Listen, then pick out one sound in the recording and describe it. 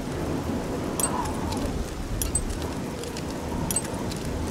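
A lock's pins click as it is picked.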